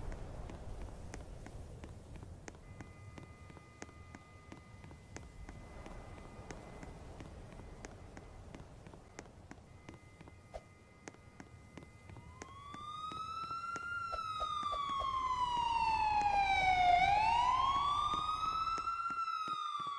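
Quick footsteps patter steadily on hard ground.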